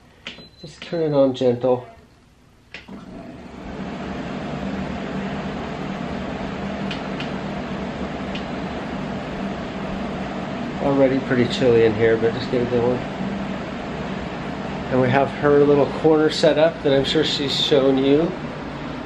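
A middle-aged man talks calmly, close to the microphone.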